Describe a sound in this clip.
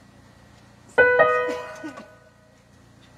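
An electronic keyboard plays a short chord that rings and fades.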